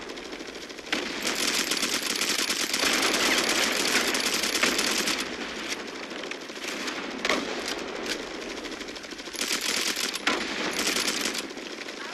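An automatic rifle fires bursts in a video game.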